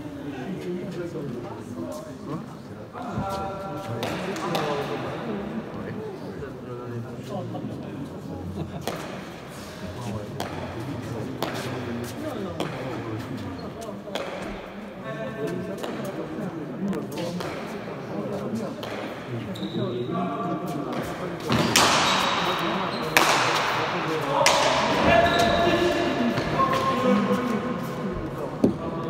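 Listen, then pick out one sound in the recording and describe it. Men talk casually nearby, echoing in the hall.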